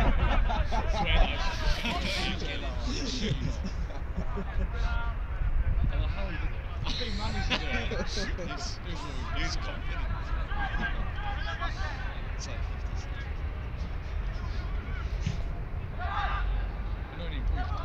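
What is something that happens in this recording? Young men shout to each other across an outdoor field.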